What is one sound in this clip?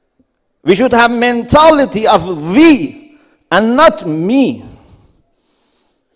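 A man speaks with emotion through a loudspeaker in a large hall.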